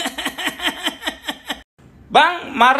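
A man laughs loudly and rhythmically, close by.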